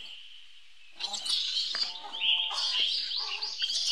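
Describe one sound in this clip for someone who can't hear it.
A monkey screeches loudly and shrilly.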